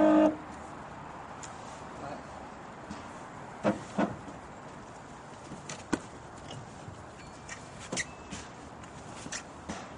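A man shifts in a car seat with soft rustles and thumps.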